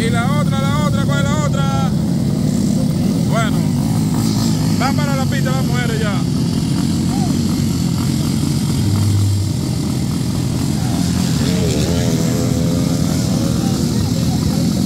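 Dirt bike engines idle and rumble steadily outdoors.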